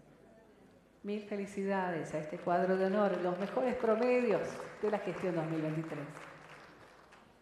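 A young woman speaks into a microphone, heard through a loudspeaker.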